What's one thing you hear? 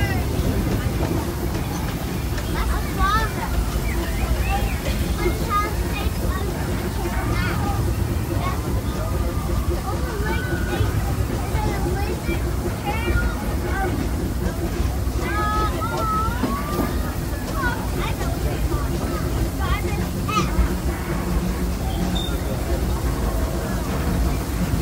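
A small train rumbles steadily along its track.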